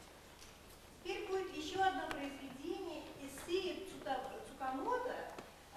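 A woman sings in a clear operatic voice in a hall.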